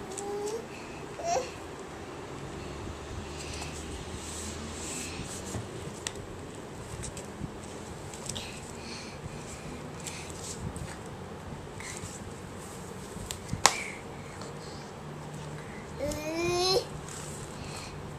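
Paper crinkles and rustles as a toddler tugs at wrapping.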